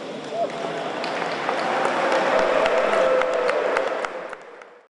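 A woman claps her hands in a large echoing hall.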